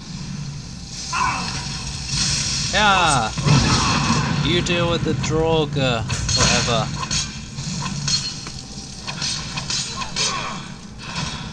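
Ice spells crackle and shatter.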